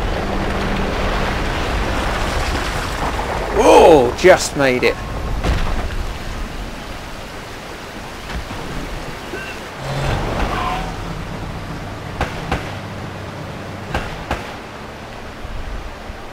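Waterfalls roar and rush steadily.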